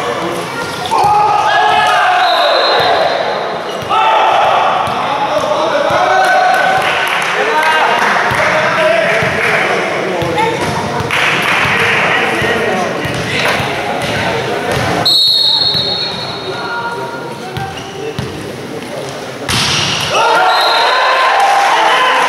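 A crowd of men shouts and cheers, echoing in a large hall.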